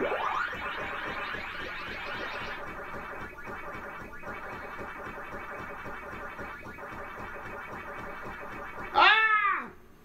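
Arcade game sounds play a steady warbling siren with rapid chomping blips.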